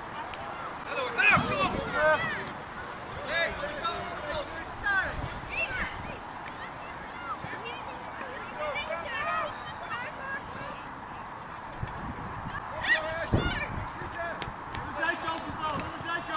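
Young children shout and call out excitedly across an open field.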